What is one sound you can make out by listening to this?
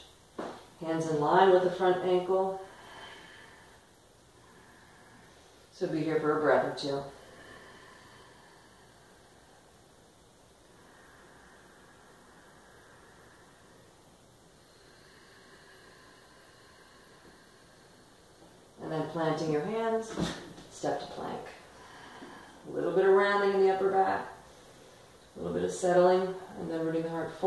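A woman speaks calmly and clearly, giving slow instructions with long pauses.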